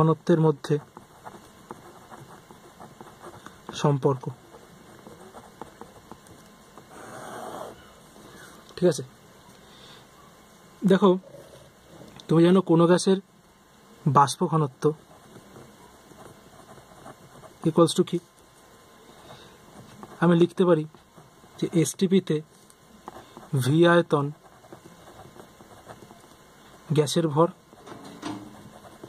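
A pen scratches across paper.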